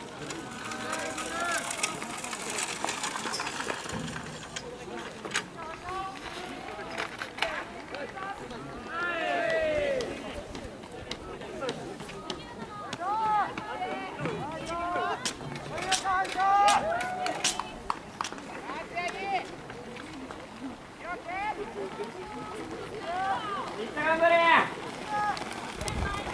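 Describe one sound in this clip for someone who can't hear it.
Men and women shout encouragement from a distance outdoors.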